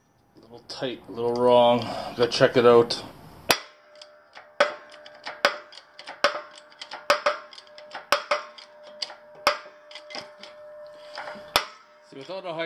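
A hydraulic press pump handle clicks and clunks as it is worked.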